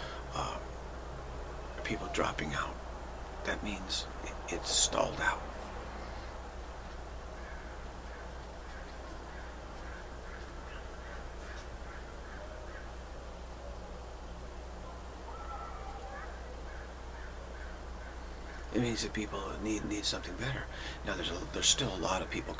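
A middle-aged man speaks calmly and close up, with long pauses.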